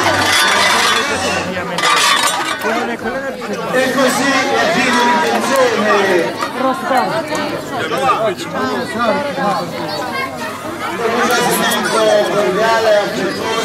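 A wooden rake scrapes over cobblestones.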